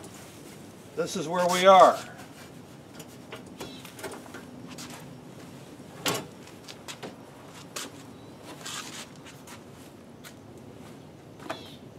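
A fabric cover rustles as it is pulled back.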